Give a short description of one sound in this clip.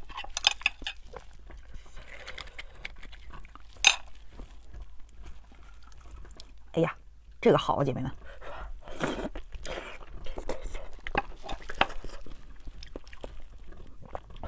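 Sticky meat squelches and tears between gloved hands.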